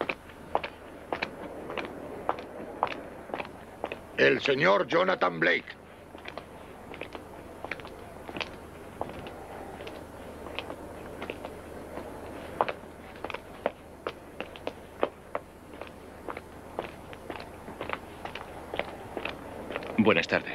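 Footsteps click on a hard floor in an echoing hall.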